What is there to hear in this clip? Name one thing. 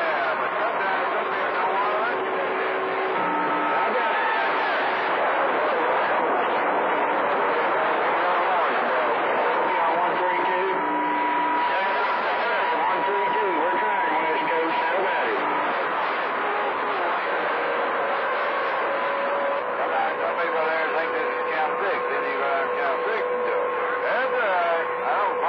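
A radio receiver hisses and crackles with a busy, garbled signal and faint whining tones.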